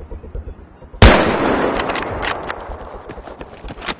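A rifle fires a single loud shot that echoes away.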